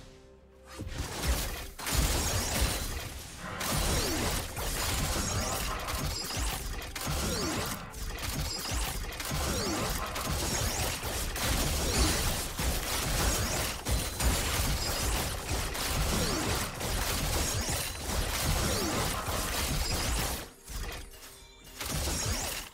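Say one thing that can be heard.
Fantasy battle effects whoosh, zap and clang as characters fight.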